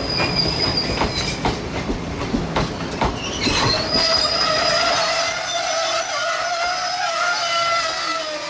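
A train rolls past close by, wheels clacking over the rail joints.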